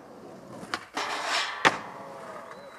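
A skateboard lands hard on concrete.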